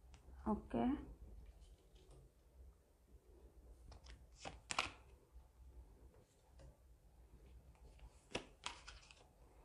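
Cards are laid down on a table with soft taps.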